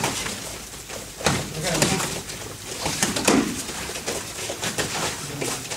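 Kicks and punches thump against striking pads.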